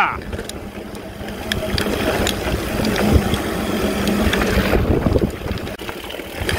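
Wind rushes past a bicycle rider.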